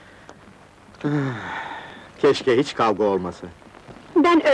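A man speaks softly and warmly, close by.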